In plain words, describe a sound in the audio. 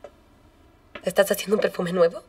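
Another young woman speaks softly up close.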